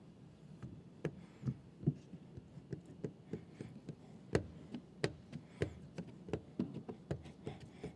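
Hands tap and knock on a car window and door panel.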